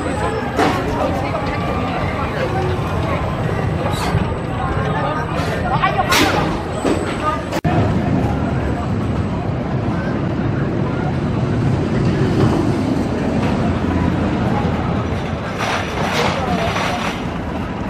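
Children shriek on a roller coaster.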